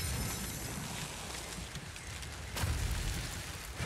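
A magical energy portal hums and crackles.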